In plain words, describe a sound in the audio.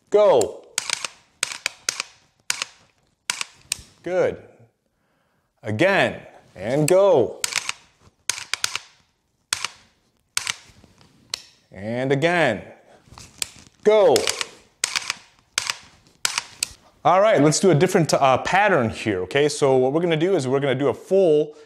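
A handgun fires shots in quick bursts.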